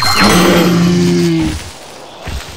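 A large dinosaur gives a deep, loud call.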